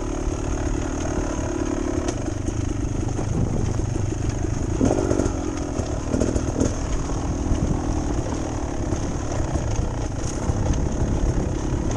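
Tyres crunch and rattle over rocky dirt.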